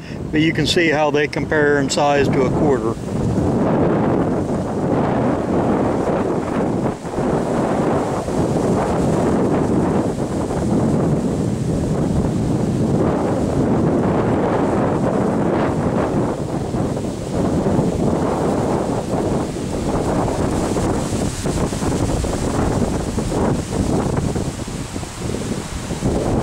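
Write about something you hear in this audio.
Strong wind blows steadily outdoors.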